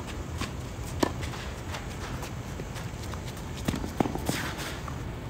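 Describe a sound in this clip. A tennis ball is struck back and forth with rackets, each hit a sharp pop.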